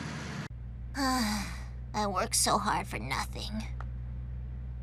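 A young girl speaks sleepily and lazily.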